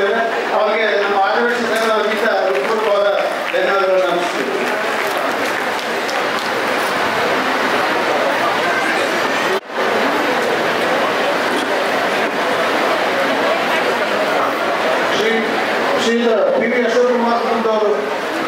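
A crowd of men and women chatters indoors.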